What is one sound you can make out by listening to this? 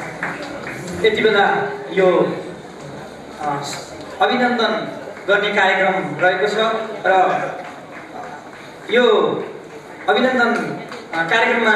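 A man speaks with animation through a microphone over loudspeakers.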